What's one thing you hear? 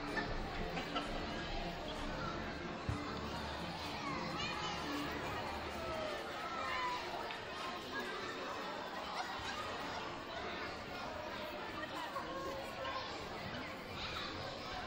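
Children shout and squeal with excitement.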